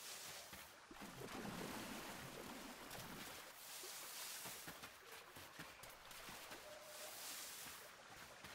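Water rushes steadily in a stream.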